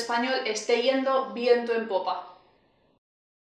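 A young woman speaks brightly and close to a microphone.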